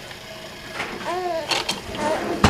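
A baby coos softly close by.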